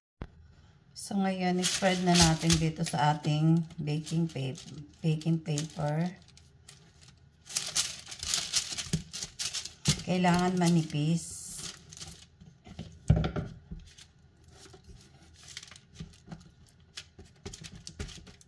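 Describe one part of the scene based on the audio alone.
Hands press and crunch loose oats on paper.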